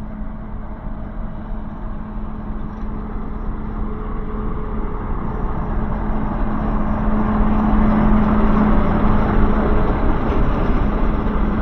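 Train wheels roll and clatter on the rails.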